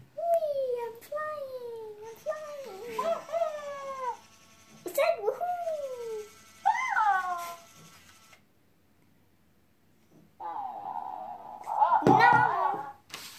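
A toy chirps and babbles in a high electronic voice.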